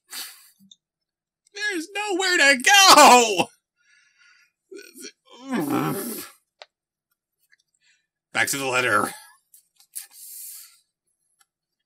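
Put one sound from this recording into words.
A man speaks dramatically close to a microphone, with wailing, pained cries.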